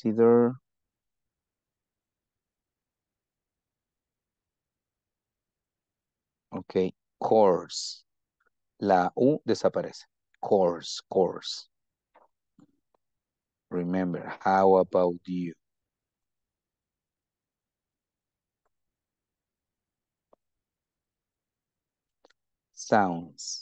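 A man speaks calmly over an online call, reading out in short phrases with pauses.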